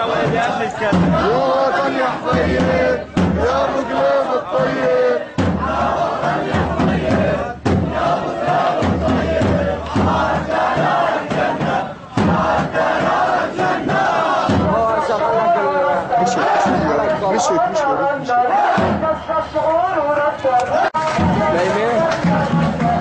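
A crowd of men chants loudly together outdoors.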